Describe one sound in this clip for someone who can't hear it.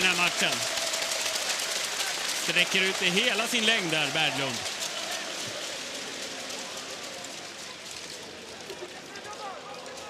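A stadium crowd roars and cheers, then slowly quiets down.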